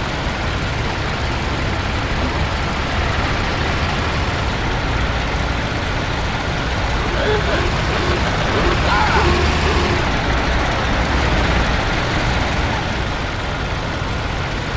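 An old car engine rumbles steadily.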